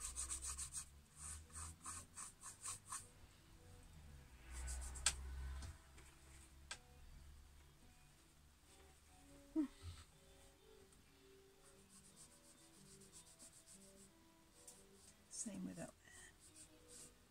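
A paintbrush dabs and scratches against canvas in quick strokes.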